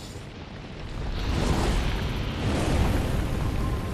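A deep low rumble swells.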